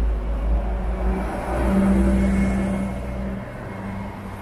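A bus engine rumbles as a bus passes close by.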